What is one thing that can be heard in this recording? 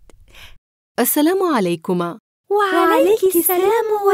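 A woman speaks warmly and calmly.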